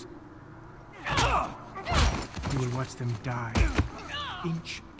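Men grunt and struggle in a scuffle.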